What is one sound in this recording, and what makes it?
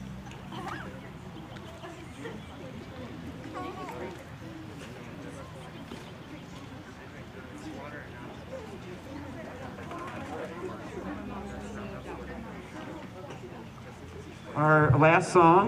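A crowd of young people chatters quietly outdoors.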